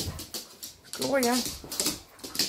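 A dog yelps during play.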